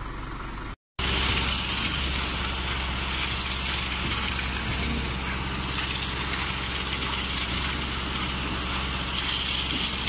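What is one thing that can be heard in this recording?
A machine engine drones steadily with a low hum.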